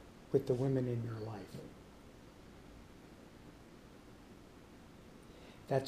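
An elderly man speaks briefly and calmly nearby.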